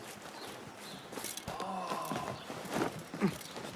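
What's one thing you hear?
Hands and feet knock on wooden scaffolding while climbing.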